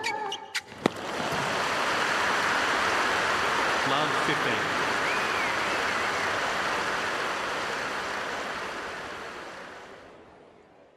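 A crowd applauds and cheers loudly, then fades.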